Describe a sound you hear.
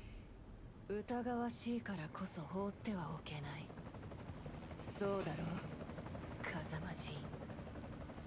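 A young woman speaks quietly and coolly, in a low voice.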